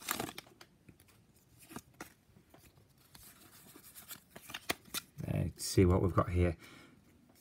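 Trading cards rustle and click softly as hands shuffle through them close by.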